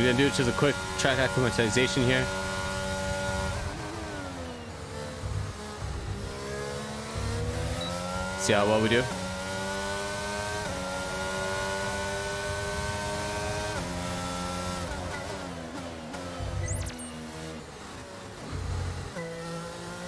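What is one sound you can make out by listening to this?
A racing car engine whines and rises and falls in pitch as it shifts gears.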